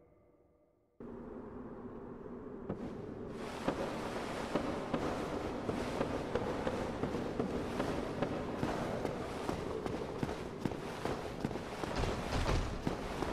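Armoured footsteps thud quickly across wooden and stone floors.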